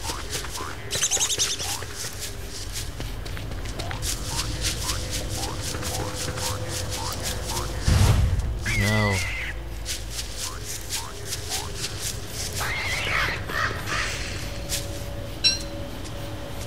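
Quick footsteps patter steadily across dry ground.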